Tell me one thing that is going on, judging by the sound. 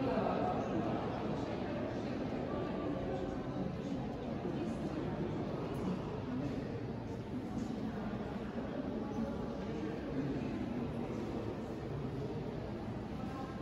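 Adult men and women chat quietly in the distance in a large echoing hall.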